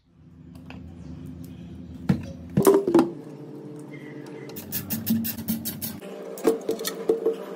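A metal casing clicks and clinks as it is handled.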